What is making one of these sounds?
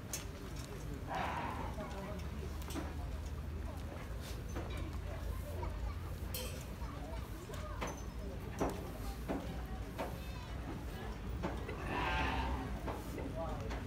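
Sheep bleat loudly nearby.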